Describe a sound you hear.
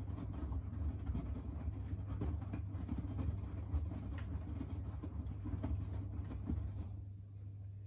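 Wet laundry thumps and sloshes inside a turning drum.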